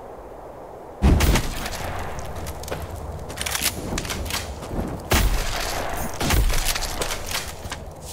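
Fiery blasts whoosh and crackle in quick bursts.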